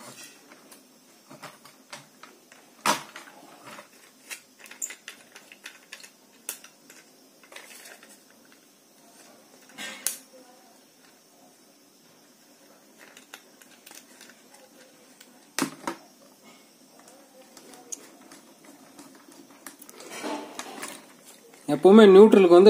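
A screwdriver clicks and taps against plastic sockets and screws.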